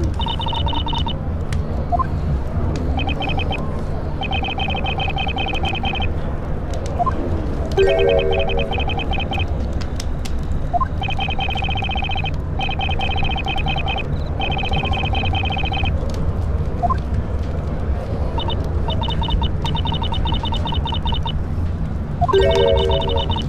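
Rapid electronic blips chirp in short bursts.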